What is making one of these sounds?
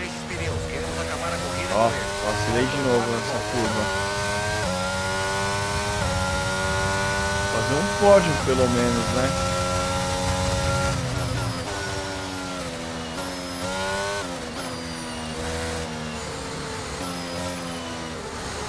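A racing car engine screams at high revs, climbing through the gears and dropping as the car slows.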